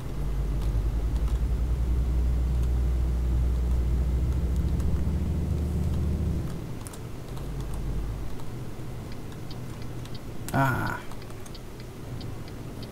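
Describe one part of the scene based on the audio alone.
A truck engine rumbles deeply, then eases off as the truck slows.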